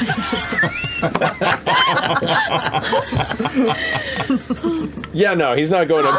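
Several men and women laugh together into microphones.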